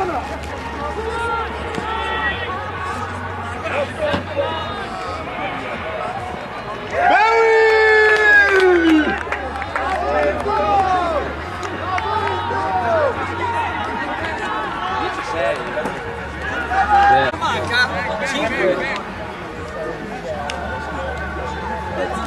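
Young men shout and call out to one another outdoors.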